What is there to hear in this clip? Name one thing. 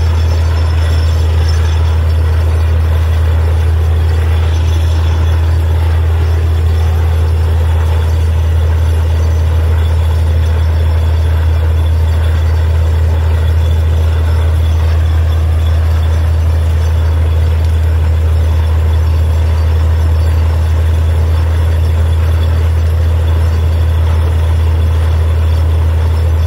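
A drilling rig's engine drones loudly and steadily outdoors.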